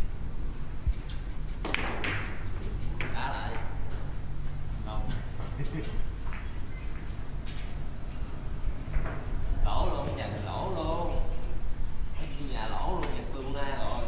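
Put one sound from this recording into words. Billiard balls click against each other and knock on the cushions.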